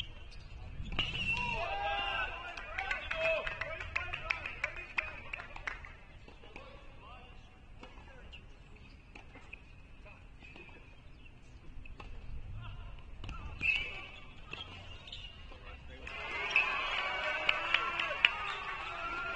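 Young women chat at a distance outdoors.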